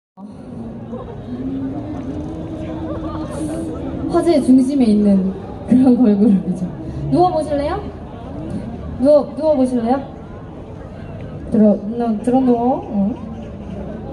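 A young woman sings loudly into a microphone through a loudspeaker, outdoors.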